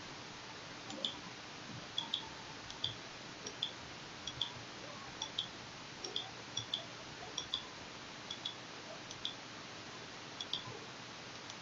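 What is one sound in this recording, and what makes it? Soft electronic ticks sound as a game menu scrolls.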